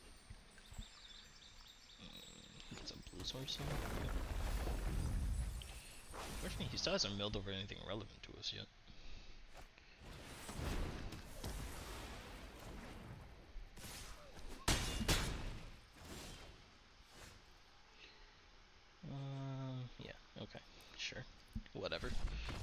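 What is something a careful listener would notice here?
A man talks casually and with animation close to a microphone.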